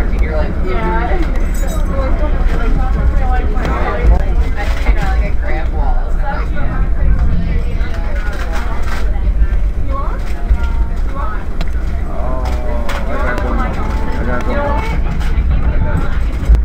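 A vehicle's engine rumbles low and steady while riding along.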